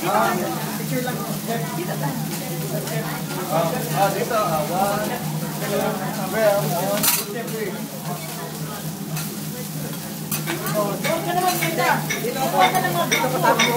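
Several people chatter in a busy room.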